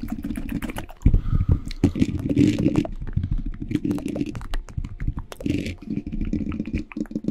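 Fingers rub and tap on a microphone's cover.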